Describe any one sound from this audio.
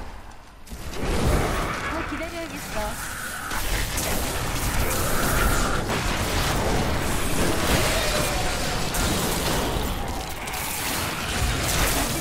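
Electric bolts crackle and zap in rapid bursts.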